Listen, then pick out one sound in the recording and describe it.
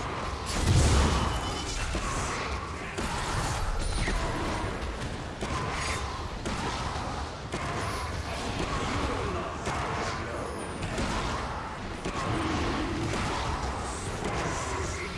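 Magic spell effects whoosh and crackle in a fast fight.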